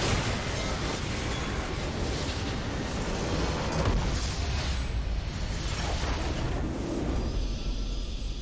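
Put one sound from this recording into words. Magic blasts and battle effects crackle and boom loudly.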